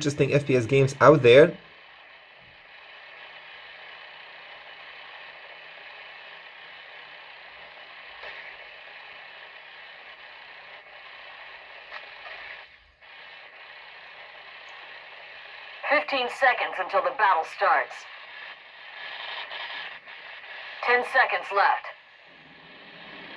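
Video game sounds play softly from a phone speaker.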